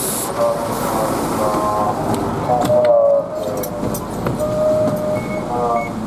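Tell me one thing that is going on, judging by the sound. Footsteps climb the steps onto a bus.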